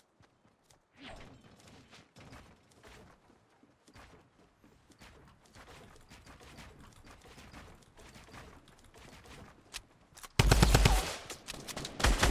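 Wooden walls and ramps clatter into place in quick succession.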